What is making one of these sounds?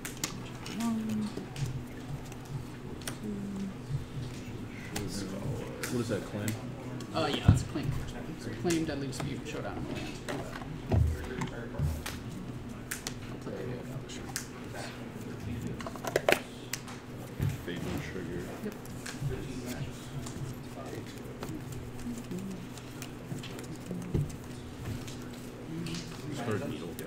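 Cards shuffle and riffle in hands.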